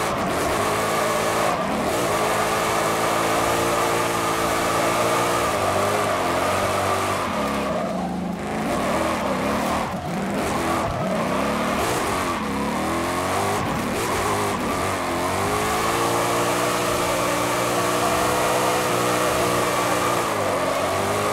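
Tyres squeal as a truck drifts.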